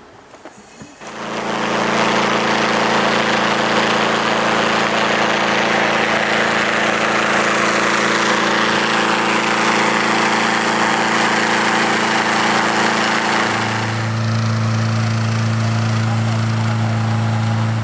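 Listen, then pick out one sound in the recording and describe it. A large engine-driven fan roars loudly and steadily.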